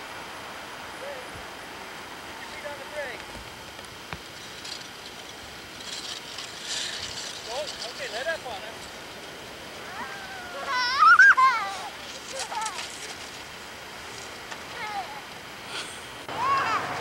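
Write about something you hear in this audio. A young child shouts and squeals outdoors.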